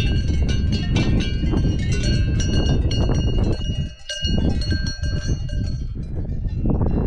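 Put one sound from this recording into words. Cowbells clang from a grazing herd nearby.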